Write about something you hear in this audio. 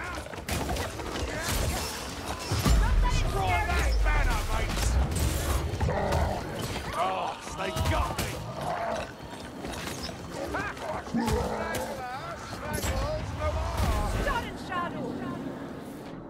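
Monsters growl and roar in combat.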